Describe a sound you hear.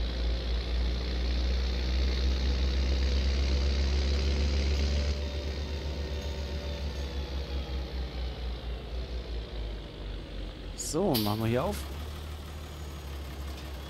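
A diesel tractor engine drones while driving.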